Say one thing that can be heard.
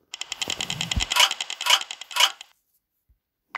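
A rapid string of game jingles rattles and chimes.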